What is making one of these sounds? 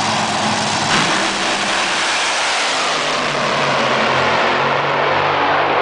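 Drag racing cars roar off the line with a deafening blast.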